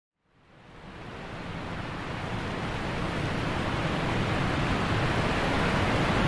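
A waterfall roars close by, growing louder.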